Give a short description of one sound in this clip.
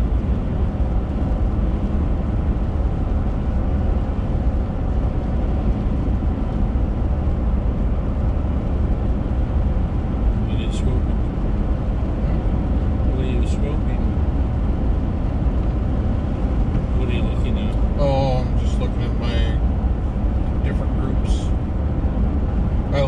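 Raindrops tap lightly on a windshield.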